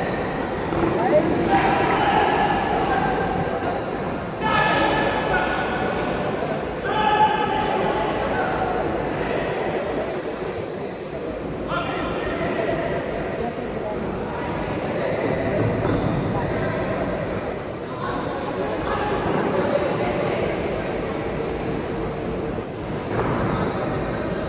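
A crowd of men shouts and cheers close by in a large echoing hall.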